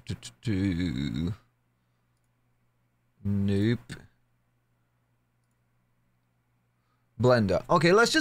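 A man speaks in short bursts into a close microphone, calmly explaining.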